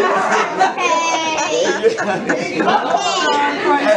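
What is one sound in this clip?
An elderly woman laughs happily up close.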